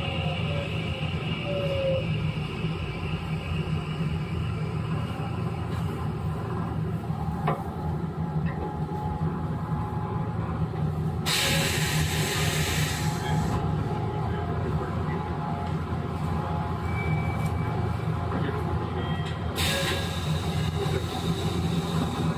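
An electric train hums and rumbles steadily nearby.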